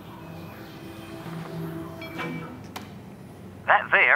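A floppy disk rattles as it is handled.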